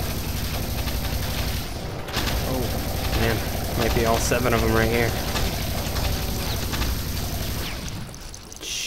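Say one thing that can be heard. A machine gun fires in rapid, rattling bursts.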